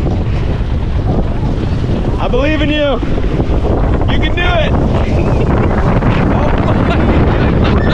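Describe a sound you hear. Water splashes and laps close by, outdoors in steady wind.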